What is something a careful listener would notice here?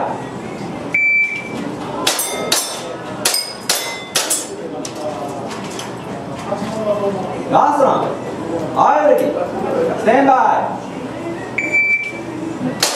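A shot timer beeps sharply.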